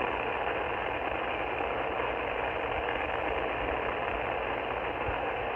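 A radio receiver hisses with steady static through its speaker.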